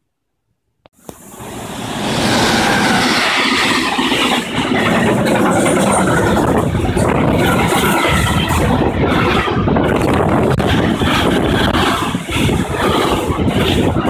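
A freight train rumbles and clatters loudly past close by.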